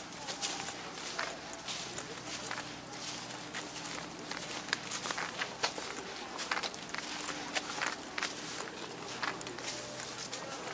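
Footsteps crunch on dry stubble.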